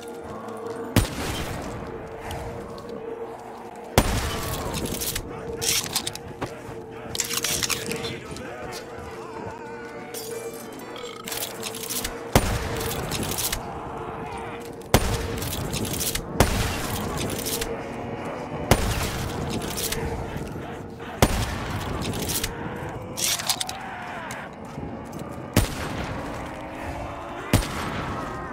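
Single gunshots crack sharply every few seconds.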